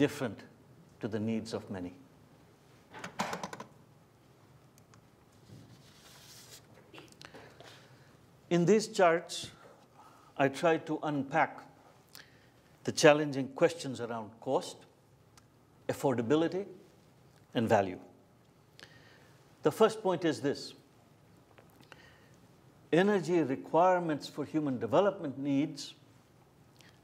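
A middle-aged man speaks calmly through a microphone, in short phrases with pauses.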